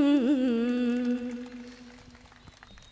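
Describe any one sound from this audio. A young woman sings a long held note through a microphone.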